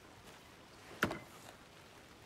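A metal case clicks open.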